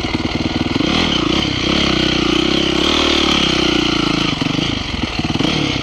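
A dirt bike engine revs hard while riding a dirt track.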